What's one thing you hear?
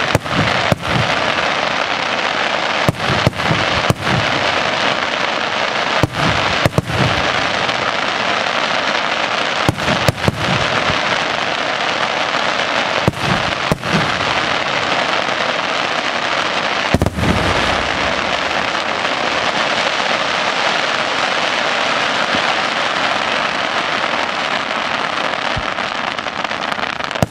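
Fireworks crackle and sizzle steadily.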